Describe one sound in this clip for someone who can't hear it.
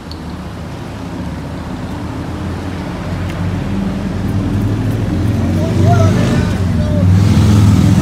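Voices of a crowd of people murmur nearby.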